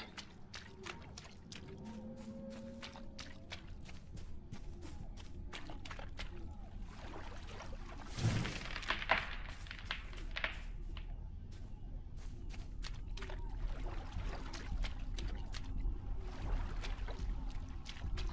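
Footsteps crunch quickly over leaves and dirt.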